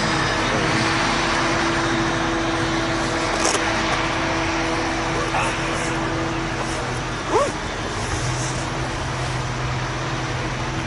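A wheel loader engine rumbles steadily in the distance.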